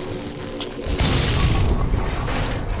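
A heavy door slides open with a rushing hiss.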